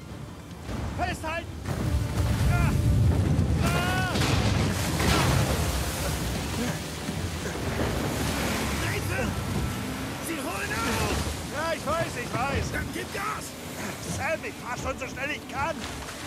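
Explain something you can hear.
Waves crash and roar around a boat.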